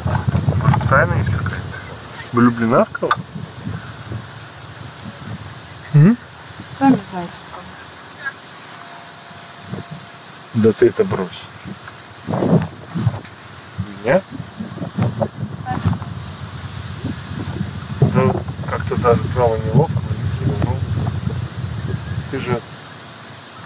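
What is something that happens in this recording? Wind rumbles outdoors in gusts.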